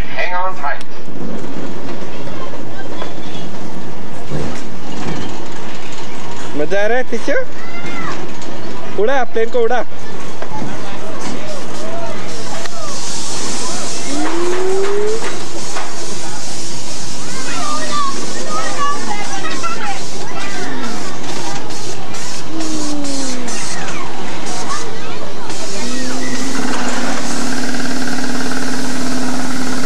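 An amusement ride whirs and rumbles steadily.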